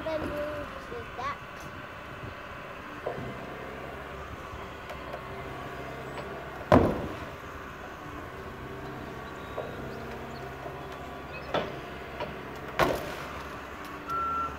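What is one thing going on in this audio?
An excavator engine hums steadily outdoors.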